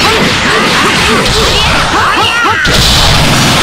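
Rapid punches and blasts crash and whoosh in quick succession.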